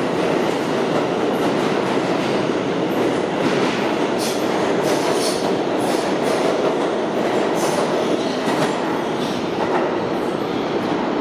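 A subway train rumbles loudly past along the tracks.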